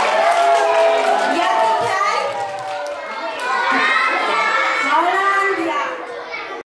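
Many young children sing together loudly in an echoing hall.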